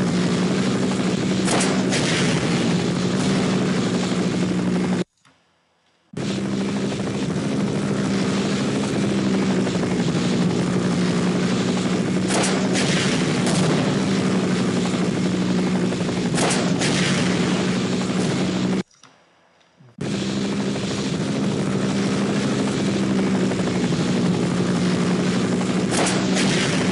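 A helicopter's rotor drones.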